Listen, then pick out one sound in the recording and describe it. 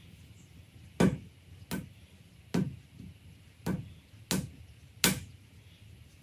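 A wooden tool taps sharply against clay on a table.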